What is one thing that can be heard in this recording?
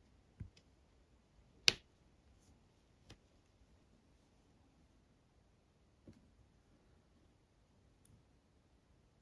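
Small plastic beads click softly as they are placed and picked up.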